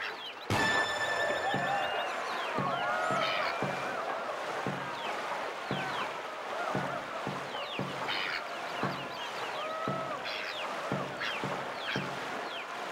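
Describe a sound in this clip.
Water rushes and churns.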